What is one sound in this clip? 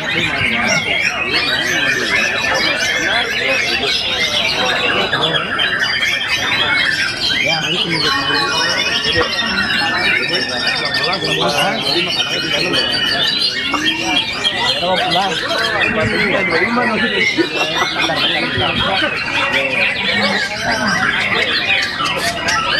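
Many songbirds chirp and whistle busily nearby.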